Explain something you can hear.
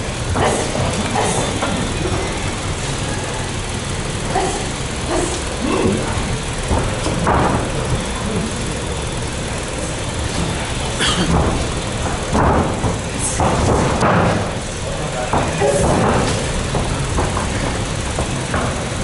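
Bare feet shuffle and thud on a canvas mat.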